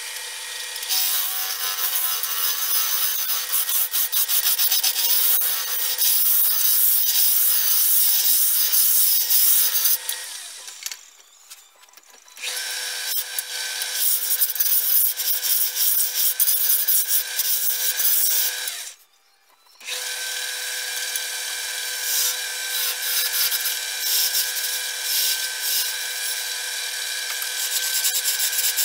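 A chisel scrapes and shaves wood spinning on a lathe.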